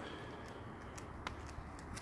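A dog's claws click on paving stones.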